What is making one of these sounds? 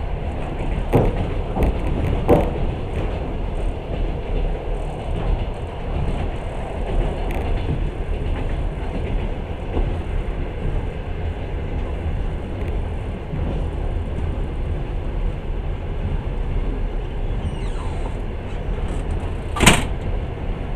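Wheels clack over rail joints now and then.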